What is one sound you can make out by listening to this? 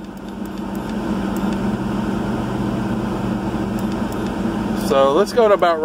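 Buttons click as a finger presses them on a radio.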